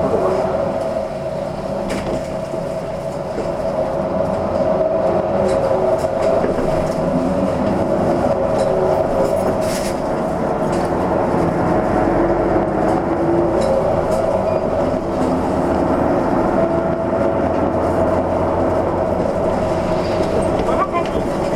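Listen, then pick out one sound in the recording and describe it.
A vehicle engine hums steadily from inside a moving bus.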